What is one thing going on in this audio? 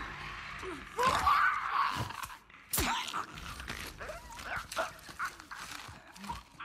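Blows thud during a struggle.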